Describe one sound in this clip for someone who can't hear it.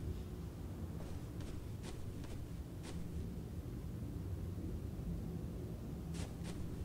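Footsteps tap on a hard floor indoors.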